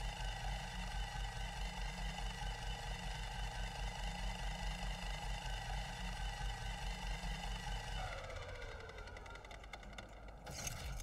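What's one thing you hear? A machine hums steadily, then winds down in pitch.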